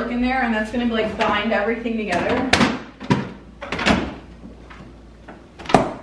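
A refrigerator door opens and shuts.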